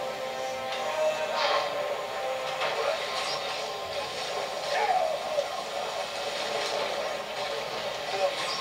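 Electric zaps crackle and bang.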